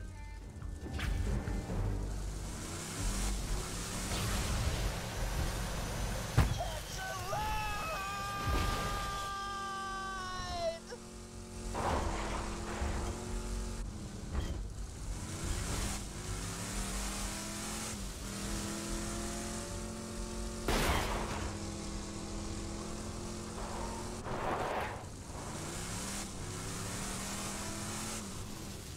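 A vehicle engine hums and revs up and down as it drives.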